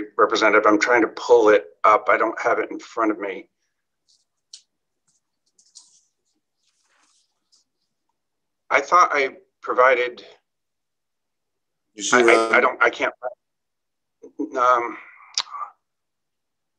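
A middle-aged man speaks calmly over an online call, in short bursts with pauses.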